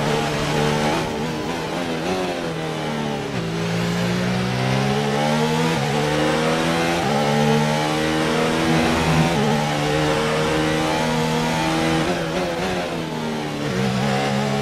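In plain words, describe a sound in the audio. A racing car engine drops in pitch as the car slows for corners.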